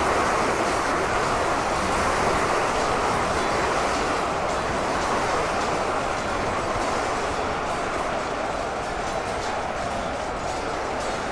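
A huge crowd of soldiers clashes in a roaring, dense din of battle.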